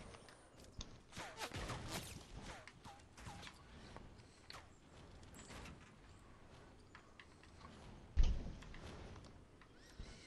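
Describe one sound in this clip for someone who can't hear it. Building pieces snap into place with short clicks.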